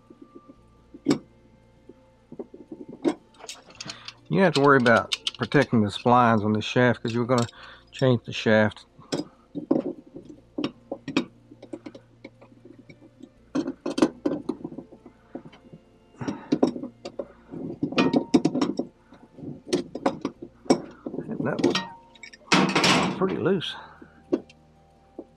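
A metal wrench clicks and scrapes against a metal nut.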